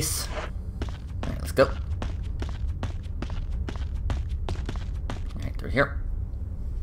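Footsteps crunch steadily on a rough floor.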